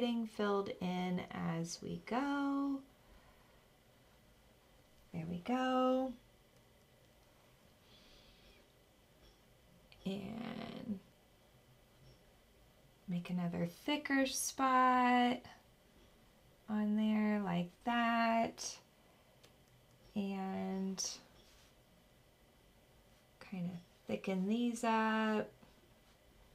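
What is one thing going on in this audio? A young woman talks calmly and clearly into a close microphone, in short phrases with pauses.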